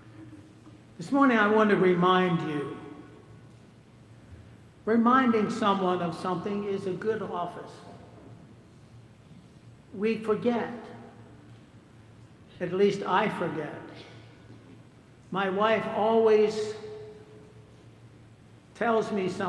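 An elderly man speaks slowly and calmly through a microphone in a large echoing hall.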